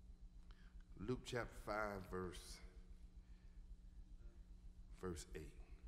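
A man speaks slowly and with emphasis through a microphone.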